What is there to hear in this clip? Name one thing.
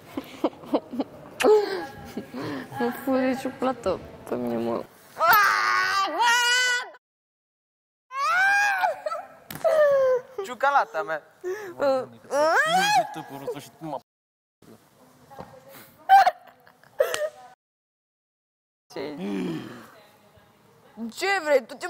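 A young woman laughs and squeals playfully close by.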